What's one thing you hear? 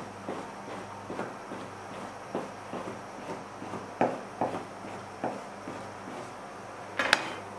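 A knife chops through dough on a wooden board with steady knocks.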